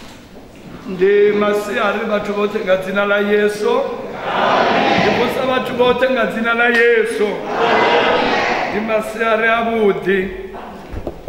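A man speaks steadily through a microphone in an echoing hall.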